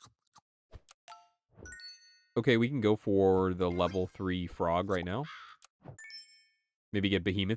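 Short bright electronic chimes ring out.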